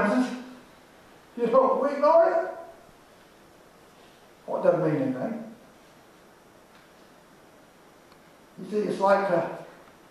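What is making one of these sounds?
An elderly man speaks calmly in short phrases, with pauses between them.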